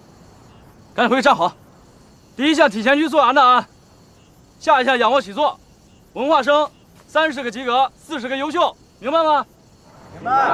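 A young man speaks sharply, close by.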